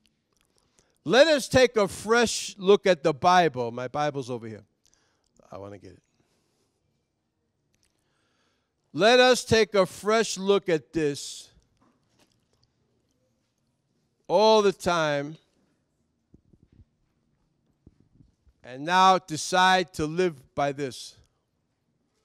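A man speaks with animation through a microphone, in bursts with long pauses.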